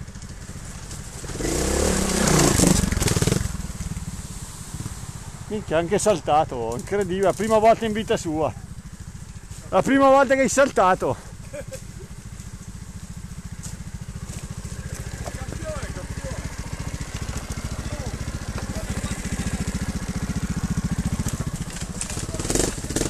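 A motorbike engine idles with a steady low putter.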